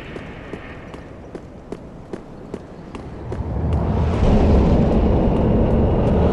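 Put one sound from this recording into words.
Armoured footsteps clank quickly on stone.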